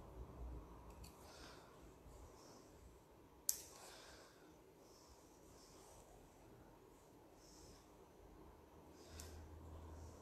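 Scissors snip close by.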